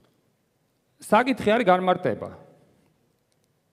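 A man speaks into a microphone in a large echoing hall.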